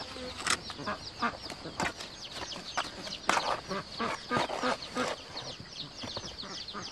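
A trowel taps and clinks against bricks.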